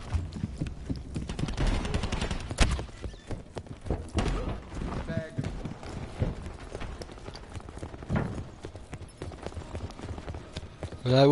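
Footsteps patter quickly on a hard floor in a video game.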